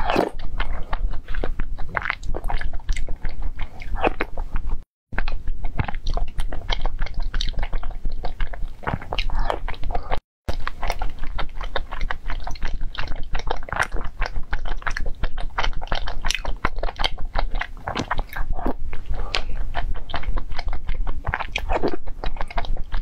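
A young woman chews soft food close to a microphone.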